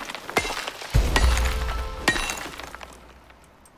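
A large rock cracks and crumbles apart with a deep rumble.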